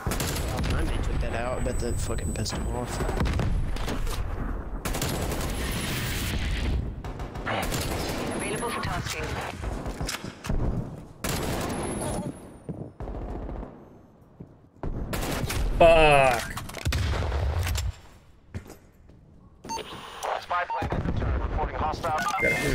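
A man talks into a microphone.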